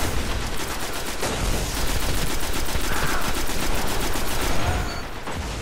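A video game's automatic rifle fires rapid bursts.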